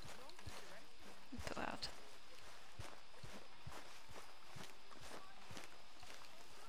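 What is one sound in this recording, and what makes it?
Footsteps walk steadily over grass.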